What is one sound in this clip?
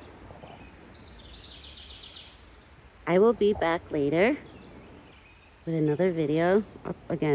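A deer tugs at leaves, and the branches rustle softly.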